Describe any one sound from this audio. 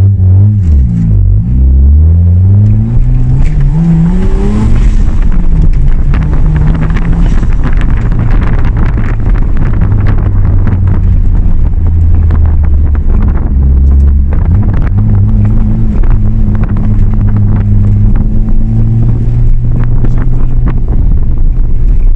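A car engine roars loudly from inside the cabin, revving up and down as it accelerates.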